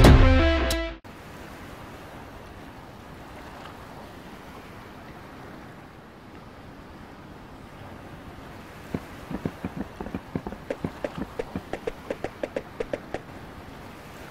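Water laps gently against a wooden dock.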